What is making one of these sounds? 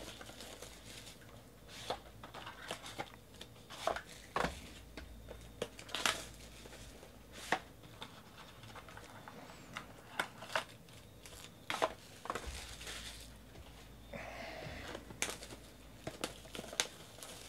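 Cardboard boxes tap and scrape as they are handled.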